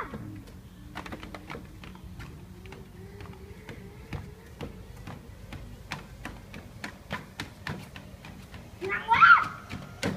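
Bare feet thud steadily on a moving treadmill belt.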